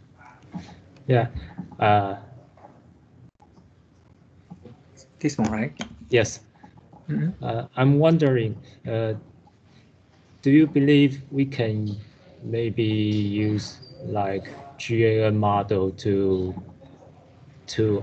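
A man lectures calmly through an online call microphone.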